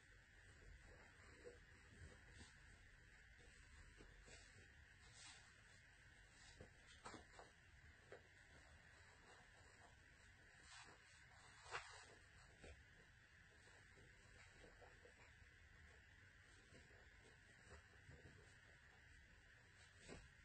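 Fabric rustles and crinkles in hands.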